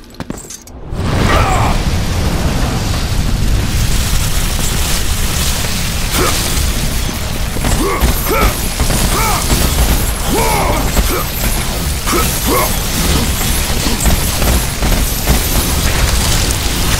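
Blades slash and strike repeatedly in a fierce fight, with loud impacts.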